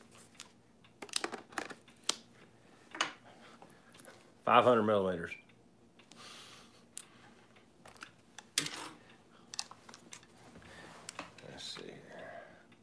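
Equipment clicks and knocks as a man handles it.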